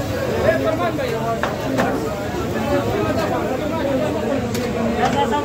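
Several men talk over one another nearby in a busy crowd.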